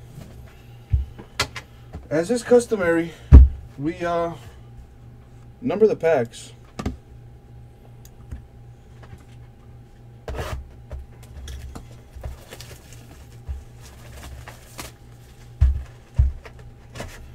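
Hands set down and knock cardboard boxes against a table.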